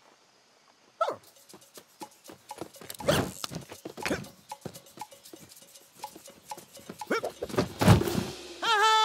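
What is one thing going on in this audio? Light cartoon footsteps patter quickly on dirt.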